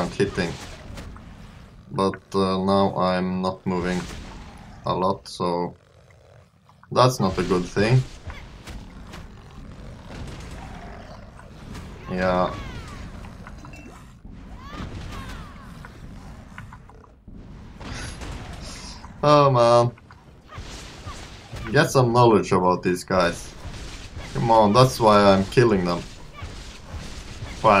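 Weapon strikes and magic blasts crack and whoosh in a fight.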